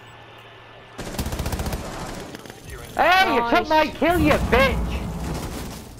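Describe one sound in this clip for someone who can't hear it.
Rapid gunshots ring out close by.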